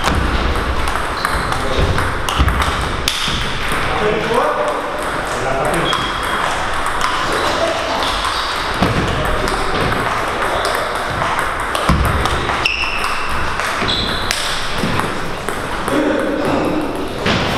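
A table tennis ball clicks back and forth off paddles and tables in an echoing hall.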